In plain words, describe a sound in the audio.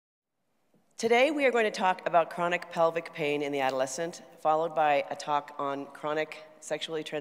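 A middle-aged woman speaks calmly into a microphone in a large hall.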